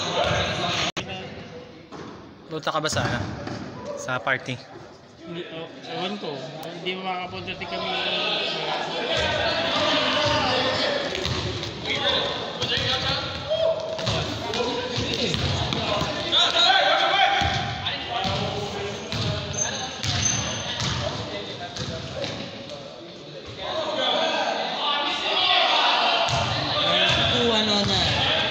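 Young men shout and call out during a game.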